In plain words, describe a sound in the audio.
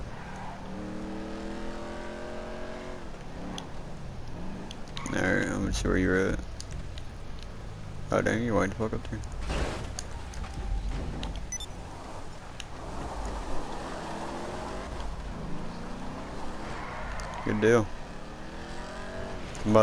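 A car engine revs and rises in pitch as it accelerates.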